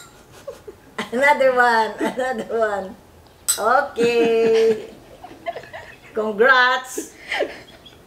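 An elderly woman laughs close by.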